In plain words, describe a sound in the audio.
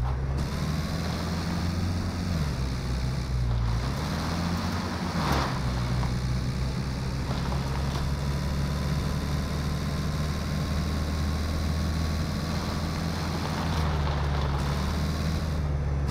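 Tyres roll over a road.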